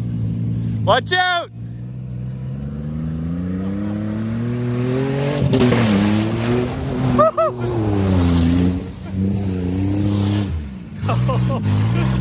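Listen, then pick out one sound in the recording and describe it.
A truck engine roars and revs hard, rising and falling.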